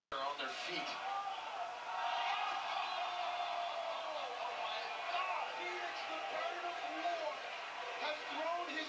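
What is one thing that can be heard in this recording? A large crowd cheers and shouts loudly in an echoing arena.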